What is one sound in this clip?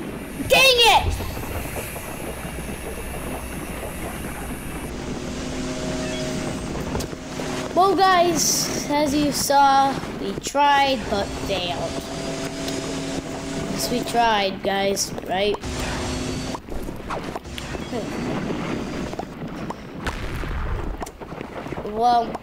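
A young boy talks close to a microphone.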